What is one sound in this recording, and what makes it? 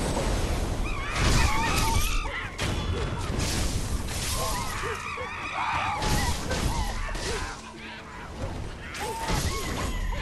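Monkeys shriek and screech in bursts.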